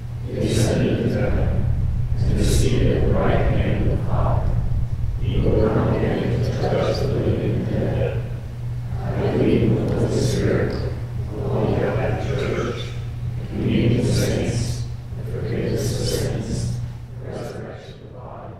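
A woman reads aloud calmly through a microphone in an echoing hall.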